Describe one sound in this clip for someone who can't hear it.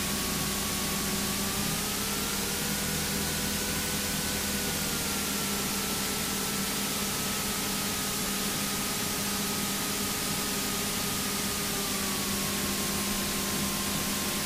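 A small propeller plane's engine drones loudly and steadily, rising and falling slightly in pitch.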